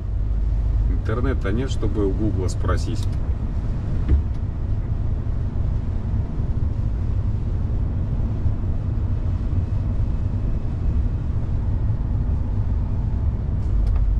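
Tyres hum steadily on the road.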